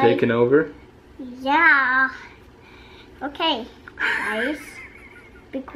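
A small child talks in a high voice close by.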